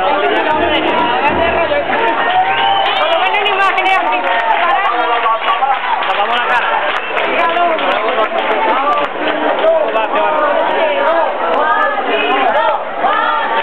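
A dense crowd of men and women chatters and shouts loudly outdoors.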